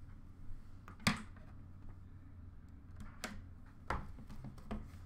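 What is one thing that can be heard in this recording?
A hard plastic card case taps on a glass counter.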